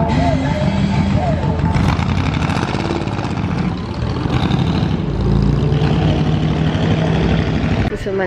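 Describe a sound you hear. A car engine revs and drives past.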